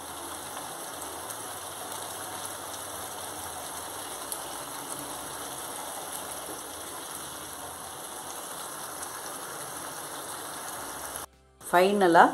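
A curry bubbles and sizzles steadily in a pan.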